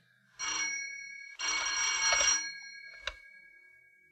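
A telephone bell rings in short bursts.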